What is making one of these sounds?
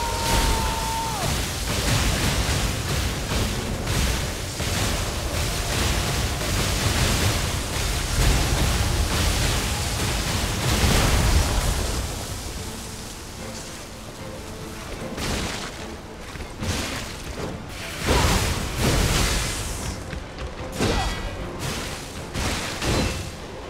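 Electric bolts crackle and thunder booms loudly.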